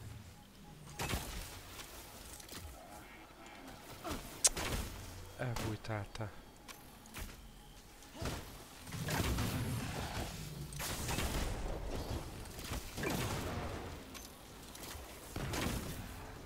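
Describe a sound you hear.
Bow shots and energy blasts crack and whoosh.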